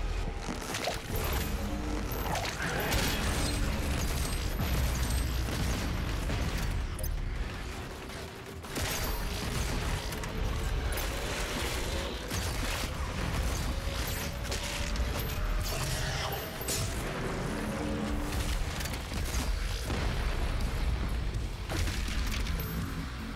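Guns fire rapidly in loud bursts.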